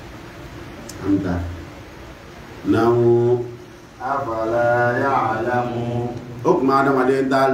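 A man speaks loudly and forcefully into a microphone.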